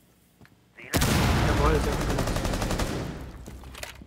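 A rifle fires a rapid burst of gunshots.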